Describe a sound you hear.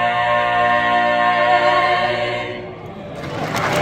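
A vocal group sings a sustained chord in close harmony, ending with a fading final note.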